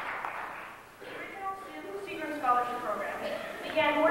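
A middle-aged man speaks calmly through a microphone and loudspeakers in an echoing hall.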